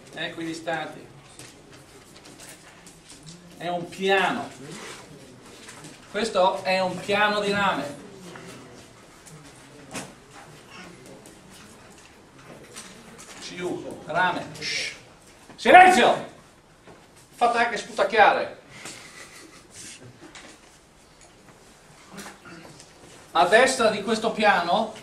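A middle-aged man lectures in a calm, clear voice in a room with some echo.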